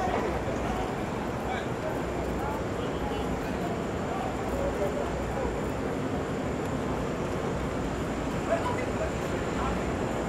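Steady city traffic rumbles along a busy street outdoors.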